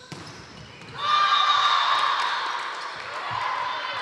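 Players and spectators cheer loudly.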